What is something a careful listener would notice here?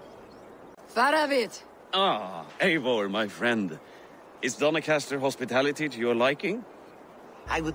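A man greets someone warmly, close by.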